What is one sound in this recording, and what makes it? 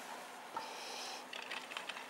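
A small dog's paws patter on snow.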